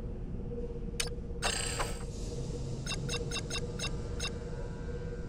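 Short menu clicks and beeps tick quickly as selections change.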